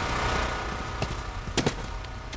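Footsteps scuff on hard ground.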